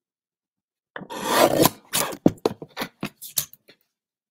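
A paper trimmer blade slides and cuts through card.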